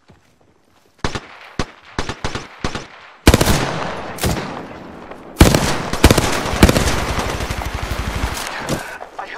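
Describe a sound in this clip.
Rapid bursts of gunfire crack out close by.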